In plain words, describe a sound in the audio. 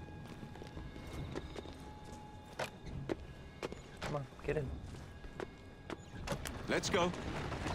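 A horse's hooves clop on cobblestones.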